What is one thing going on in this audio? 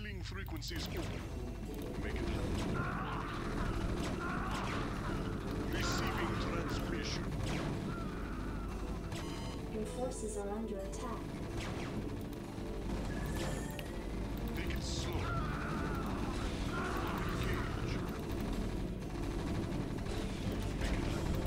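Gunfire and explosions crackle in a game.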